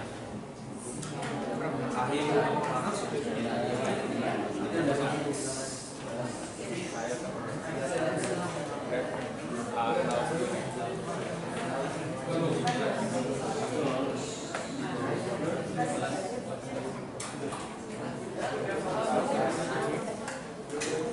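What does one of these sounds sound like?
Many teenagers chatter at once in an echoing room.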